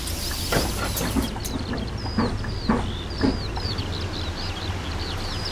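A bus engine hums steadily at idle.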